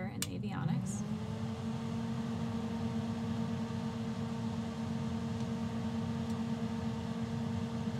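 Electronics start to hum steadily after powering on.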